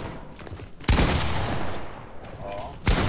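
A video game gun fires a loud shot.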